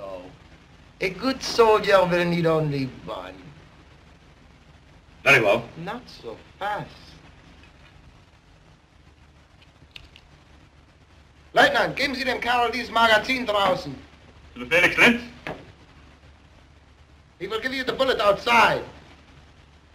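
An older man answers firmly, close by.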